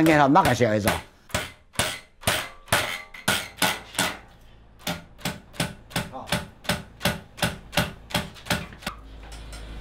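A taut string twangs in a quick, steady rhythm as cotton is beaten.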